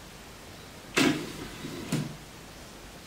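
A small door swings shut with a wooden clack.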